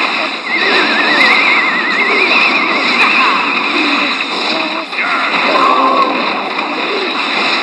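Cartoonish battle sound effects clash, zap and crackle.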